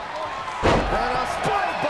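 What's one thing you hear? A heavy body thuds onto a wrestling mat.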